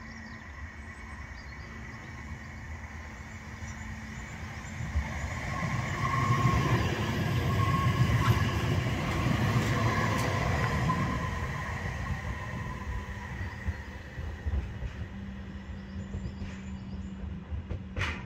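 A tram approaches, rumbles past close by and fades into the distance.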